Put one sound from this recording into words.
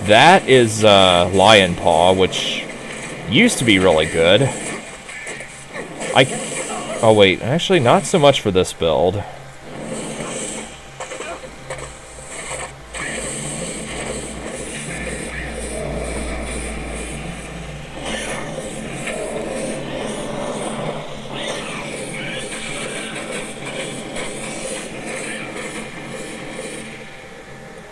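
Fiery spells whoosh and burst again and again.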